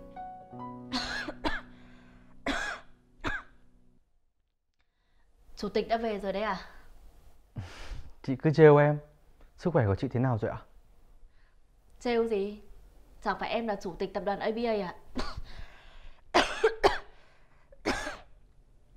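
A young woman coughs.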